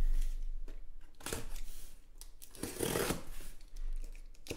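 A knife slices through packing tape on a cardboard box.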